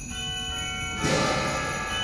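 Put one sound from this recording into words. A band starts playing a loud chord.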